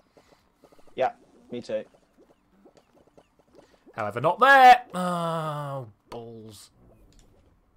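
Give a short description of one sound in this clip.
A man speaks with animation close to a microphone, his voice rising excitedly.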